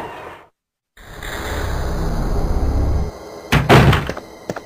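A heavy wooden door creaks slowly open.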